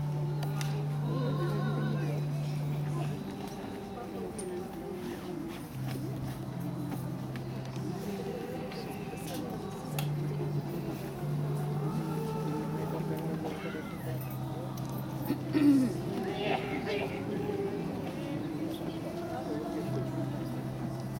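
Music with deep, steady bass notes plays over loudspeakers in the open air.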